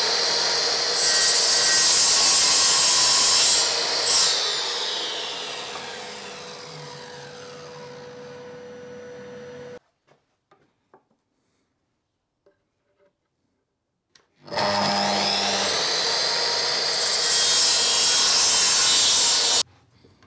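A mitre saw blade cuts through wood with a loud high whine.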